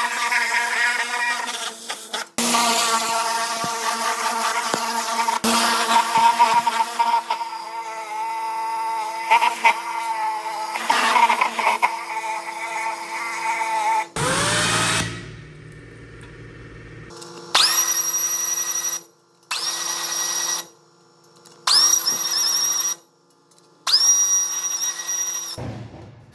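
A pressure washer pump whines steadily, cutting in and out.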